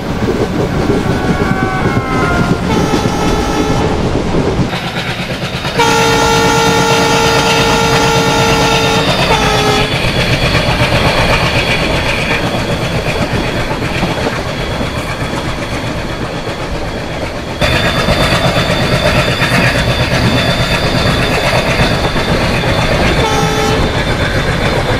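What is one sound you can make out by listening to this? A train horn blares in long blasts.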